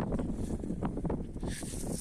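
Fresh herb sprigs rustle softly in a hand.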